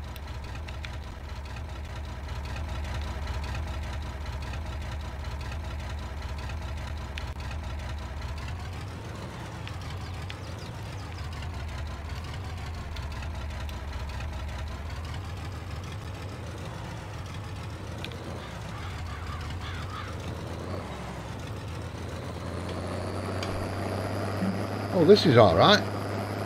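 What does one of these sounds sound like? A tractor engine runs steadily, rising and falling as it turns.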